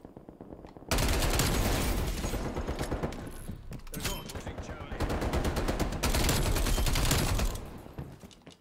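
A submachine gun fires rapid bursts at close range.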